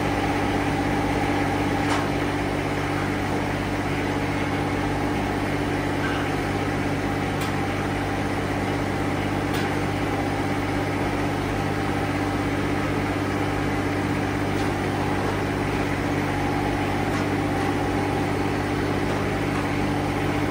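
A small tractor engine idles with a steady, low hum.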